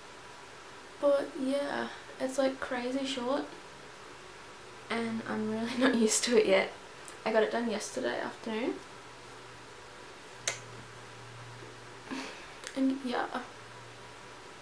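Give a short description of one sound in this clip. A young woman talks casually and cheerfully, close to a microphone.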